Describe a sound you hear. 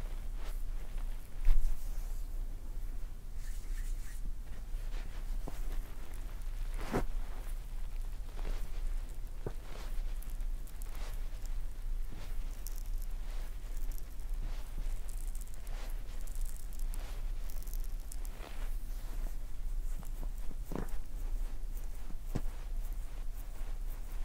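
Hands rub and slide softly over skin, close up.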